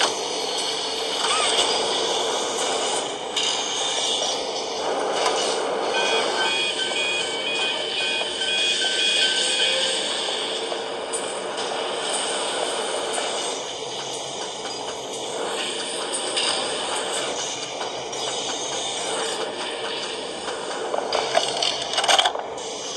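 Game sounds play from a tablet's small speaker.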